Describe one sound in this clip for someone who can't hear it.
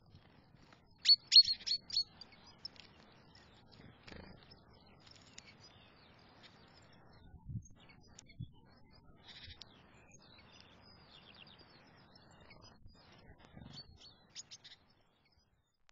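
Small birds chirp and twitter nearby.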